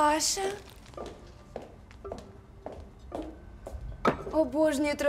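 Heeled footsteps tap on a hard floor.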